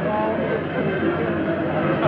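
A woman sings in a full voice.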